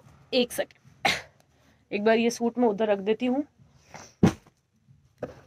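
Fabric rustles and flaps as it is unfolded.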